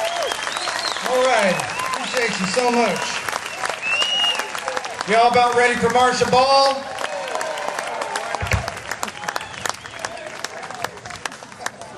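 A man speaks into a microphone over loudspeakers.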